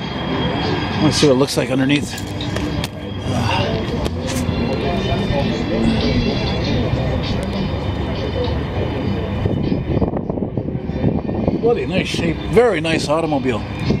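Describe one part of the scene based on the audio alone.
A man talks nearby outdoors.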